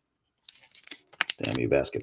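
Scissors snip through a wrapper.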